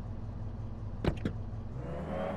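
Car doors swing open with a click.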